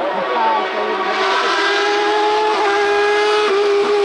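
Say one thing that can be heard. A second racing car engine whines in the distance and grows louder as it approaches.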